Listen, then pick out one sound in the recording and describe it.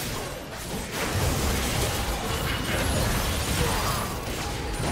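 Magic blasts and hits crackle and boom in a fast game battle.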